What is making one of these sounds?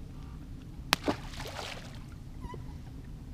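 A fishing lure splashes into the water nearby.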